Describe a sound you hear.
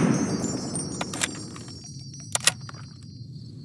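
A gun's metal parts click and clack as it is reloaded.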